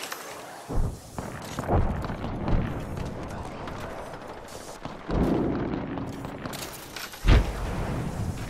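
A game character lands with heavy thumps.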